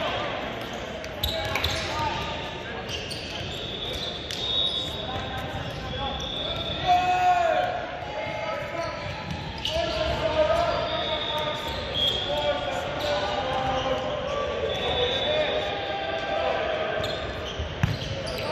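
Players and spectators chatter and call out in a large echoing gym.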